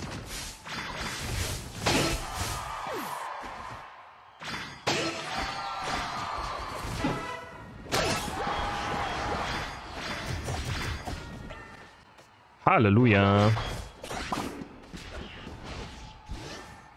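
Video game sound effects burst and chime.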